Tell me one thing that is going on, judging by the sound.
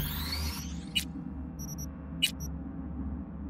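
Menu clicks sound in short beeps.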